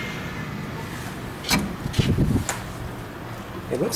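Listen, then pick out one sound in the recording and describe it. A door latch clicks as a handle is pulled.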